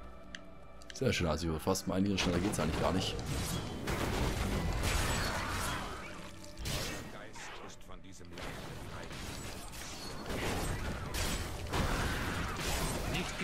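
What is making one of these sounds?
Fiery spells explode and crackle in a game battle.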